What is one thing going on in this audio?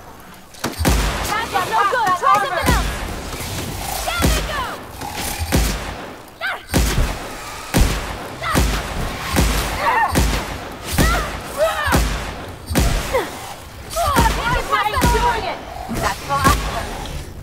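Explosions burst with a loud crackling roar.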